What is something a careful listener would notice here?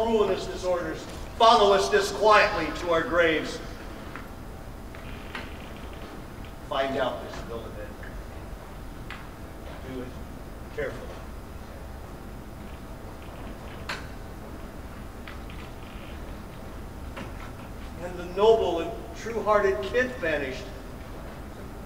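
A man speaks loudly and theatrically through a microphone in an echoing hall.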